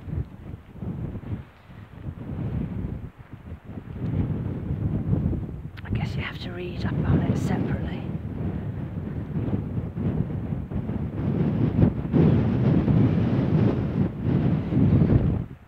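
Wind blusters loudly against the microphone outdoors.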